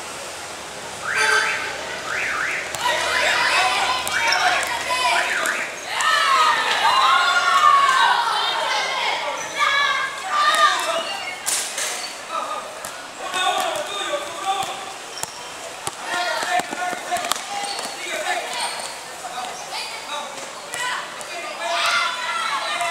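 Young boys shout to each other during a game.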